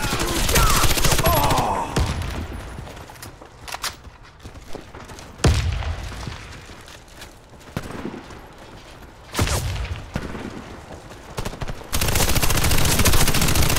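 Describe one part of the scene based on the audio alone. Automatic rifles fire rapid bursts of gunshots.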